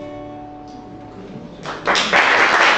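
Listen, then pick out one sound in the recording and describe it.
An acoustic guitar chord rings out and fades.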